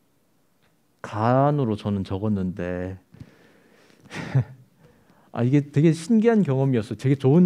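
A young adult speaks calmly into a microphone, in short phrases with pauses.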